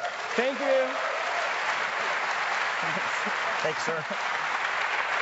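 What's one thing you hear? People in a crowd cheer and whoop.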